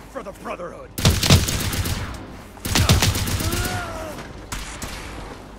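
Gunshots ring out in bursts.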